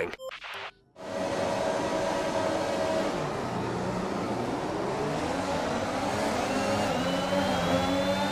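Racing car engines roar at high revs.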